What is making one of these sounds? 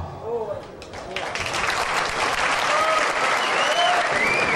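A crowd cheers and applauds loudly.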